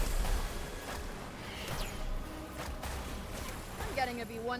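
Magic blasts crackle and burst in quick bursts.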